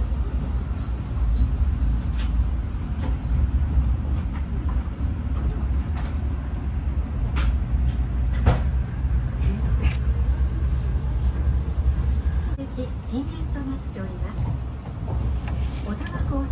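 A train rumbles steadily on its tracks, heard from inside a carriage.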